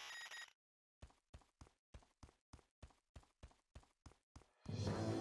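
Quick footsteps tap as a game character runs.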